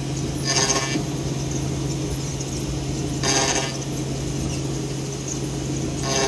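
A small cooling fan whirs.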